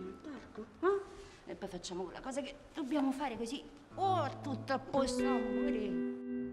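A woman talks gently and playfully, close by.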